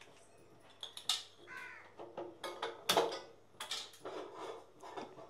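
Metal lids and pots clink and knock.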